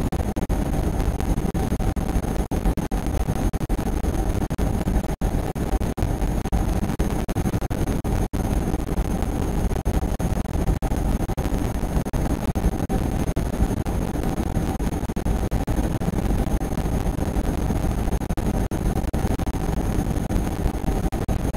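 An electric train rumbles at speed through a tunnel.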